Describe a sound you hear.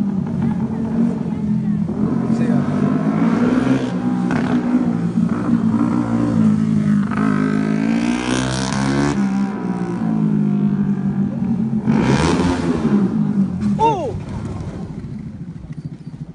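A motorcycle engine revs up and down as the motorcycle circles nearby, growing loud as it passes close.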